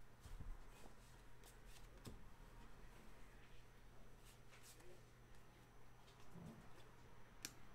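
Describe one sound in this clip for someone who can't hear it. A stack of trading cards is shuffled and flicked through by hand.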